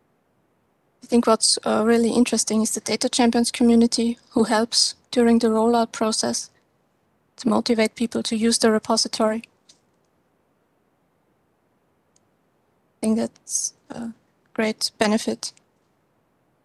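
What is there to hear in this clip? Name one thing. An adult speaks calmly through an online call.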